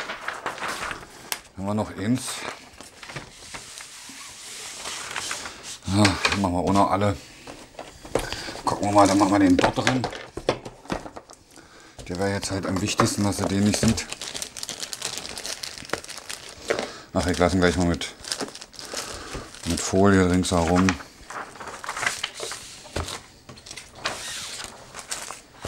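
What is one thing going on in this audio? Paper rustles and crinkles as it is unrolled and folded.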